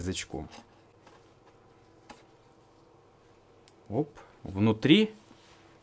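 A cardboard box lid slides open with a soft scrape.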